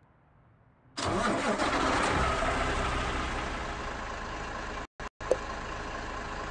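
A truck engine roars to life and settles into a steady, rumbling idle.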